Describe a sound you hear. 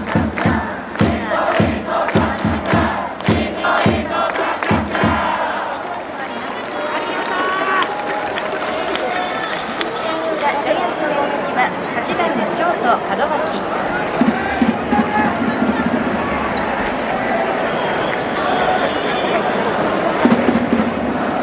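A large crowd chants and cheers in an echoing stadium.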